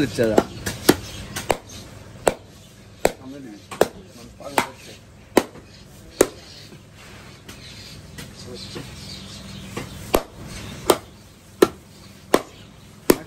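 A cleaver chops through beef ribs with sharp knocks.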